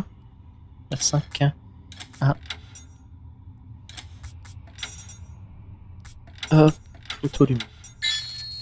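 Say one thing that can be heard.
Switches click one after another.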